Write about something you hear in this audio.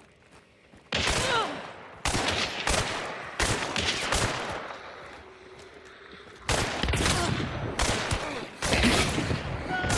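Revolver shots crack loudly, one after another.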